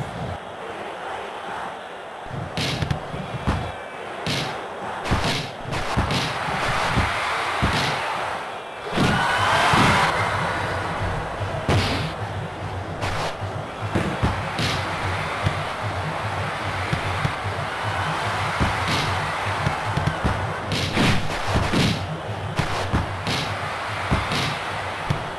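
A crowd cheers steadily in a large stadium.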